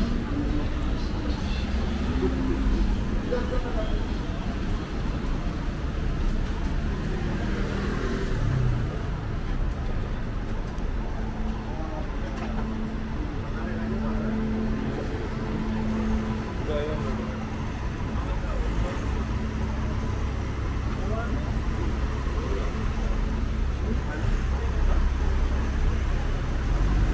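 Street traffic hums steadily outdoors.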